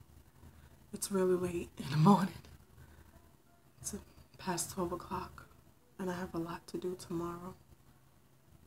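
A woman speaks calmly and close to a microphone, in short phrases with pauses.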